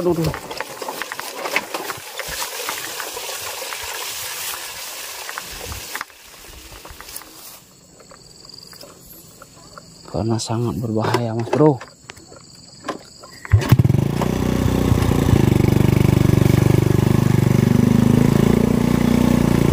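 A small motorbike engine hums steadily.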